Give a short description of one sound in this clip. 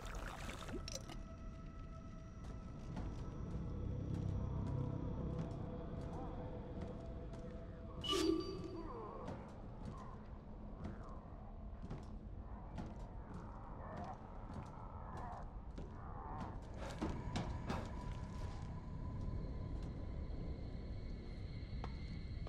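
Footsteps thud softly on a metal roof.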